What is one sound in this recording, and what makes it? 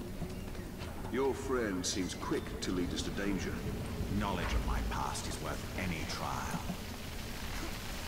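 A young man talks into a microphone close up.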